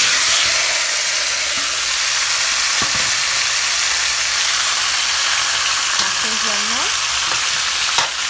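Meat sizzles and hisses steadily in a hot pan.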